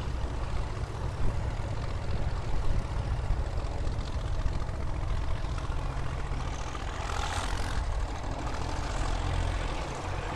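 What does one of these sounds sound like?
Tractor engines rumble as the tractors drive along a road nearby.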